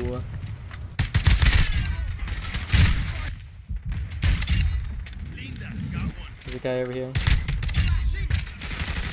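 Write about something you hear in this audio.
Gunshots crack and boom in quick bursts.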